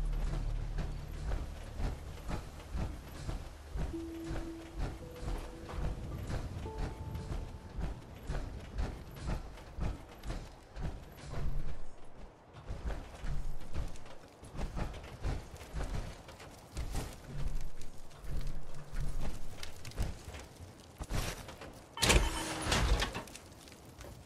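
Heavy metal footsteps thud at a steady walking pace.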